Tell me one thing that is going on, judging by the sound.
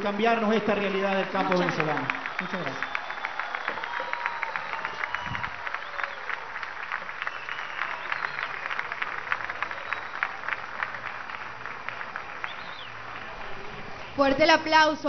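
A crowd claps in a steady rhythm.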